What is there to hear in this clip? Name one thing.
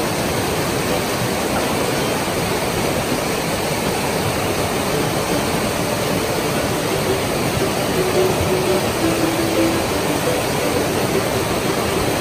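A rocky stream rushes and splashes loudly and steadily close by.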